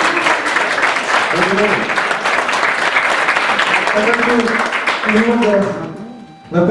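Young voices sing together in a large hall.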